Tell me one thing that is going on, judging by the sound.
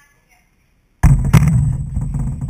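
Something knocks and rumbles loudly right beside the microphone.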